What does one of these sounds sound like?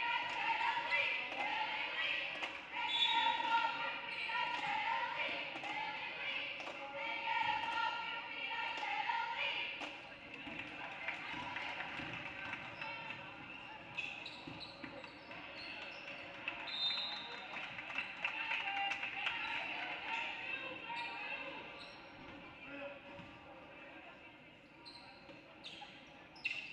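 Crowd voices chatter and call out in a large echoing gym.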